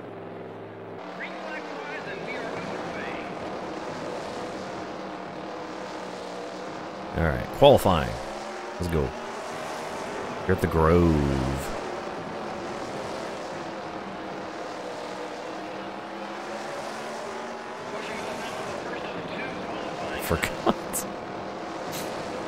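A racing car engine drones steadily and revs up and down.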